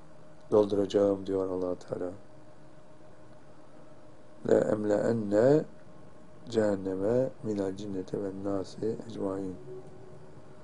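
An elderly man reads out calmly and slowly into a close microphone.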